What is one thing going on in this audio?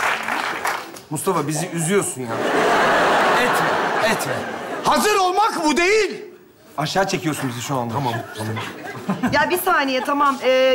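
A young man speaks with animation on a stage, heard through microphones.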